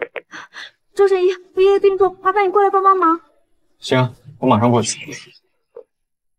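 A young man talks into a phone with urgency.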